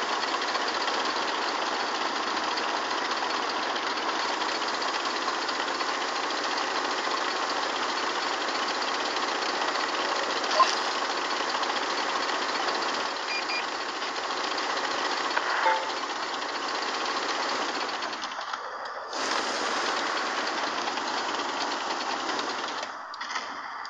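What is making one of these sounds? A tank engine roars steadily and drops off when the tank stops.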